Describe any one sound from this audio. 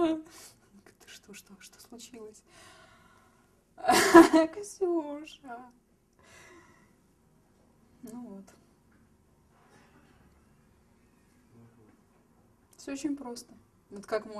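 A young woman speaks close by, in bursts with pauses.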